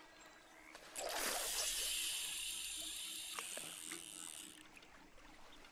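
A fishing reel whirs as a line is cast out.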